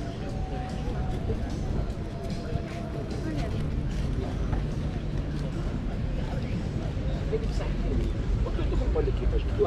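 Men and women chat faintly as they stroll past outdoors.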